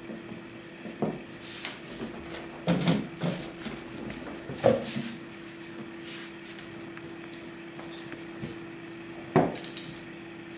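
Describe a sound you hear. Cats scuffle and thump on a hard floor.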